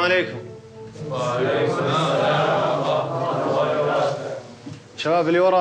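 A group of young men chatter and murmur in a room.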